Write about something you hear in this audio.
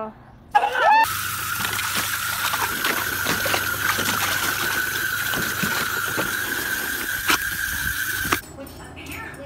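Water sprays hard from a garden hose.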